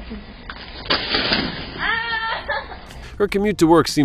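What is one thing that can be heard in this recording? A person falls hard onto an icy step with a thud.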